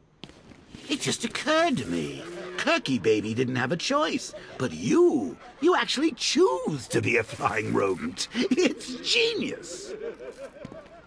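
A man talks in a mocking, theatrical voice.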